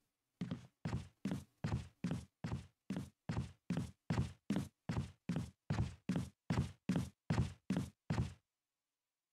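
Footsteps run quickly across a wooden floor.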